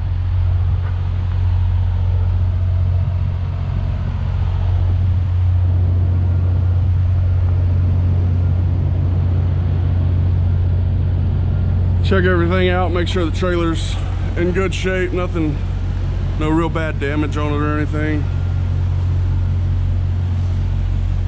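A trailer's refrigeration unit drones steadily nearby.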